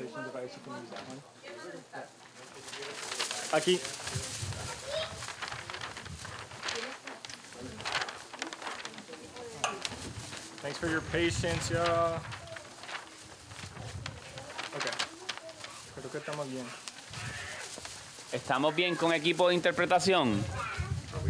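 A young man speaks at a slight distance.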